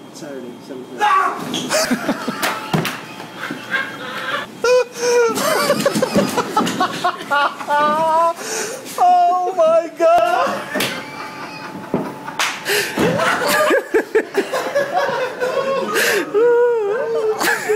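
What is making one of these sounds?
Men laugh loudly and shout.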